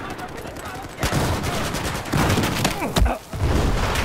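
Gunshots fire in rapid bursts close by.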